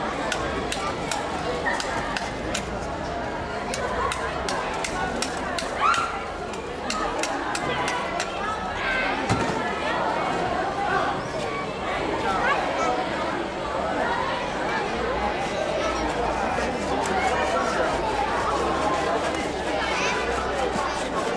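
A crowd of adults and children chatters outdoors.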